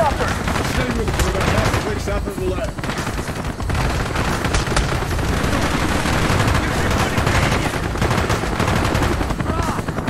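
A rifle fires repeated loud shots.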